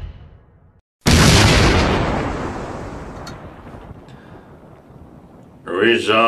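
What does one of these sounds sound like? A loud explosion booms and slowly dies away.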